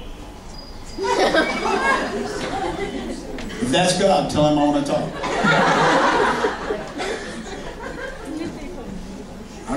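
A middle-aged man speaks with animation through a microphone and loudspeakers in a large room.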